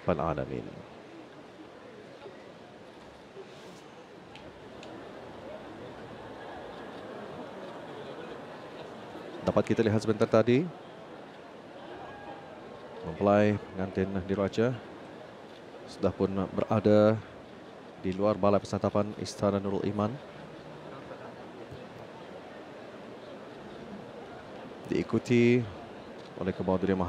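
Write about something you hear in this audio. A large crowd murmurs steadily in a large echoing hall.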